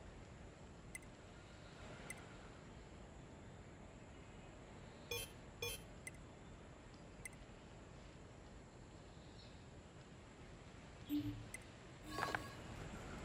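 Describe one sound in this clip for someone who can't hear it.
Short menu clicks tick as selections change.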